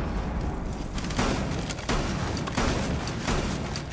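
A shotgun fires loud blasts indoors.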